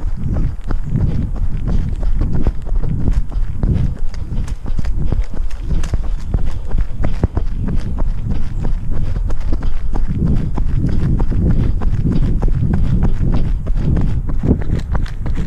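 Footsteps crunch quickly along a dirt path.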